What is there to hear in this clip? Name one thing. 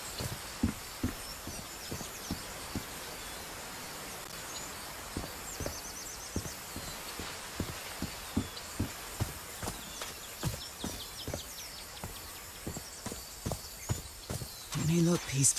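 Footsteps tread steadily over stone and grass.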